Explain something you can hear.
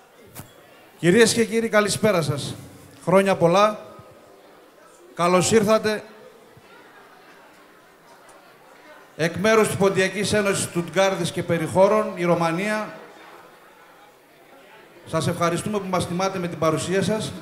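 A man speaks with feeling into a microphone, his voice carried over loudspeakers in a large room.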